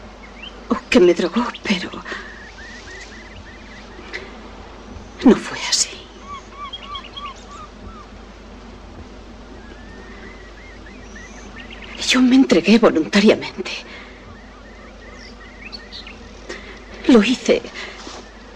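A woman speaks quietly and with feeling, close by.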